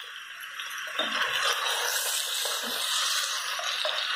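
A spatula stirs chunks of food in a metal pot, scraping and squelching.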